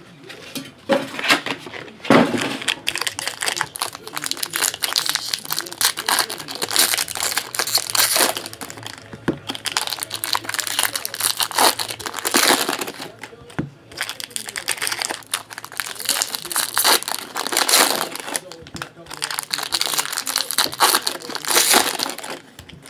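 Foil trading card packs crinkle and tear as hands open them.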